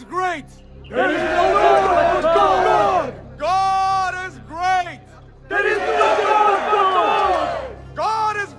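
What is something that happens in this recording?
A crowd of men chants loudly in unison.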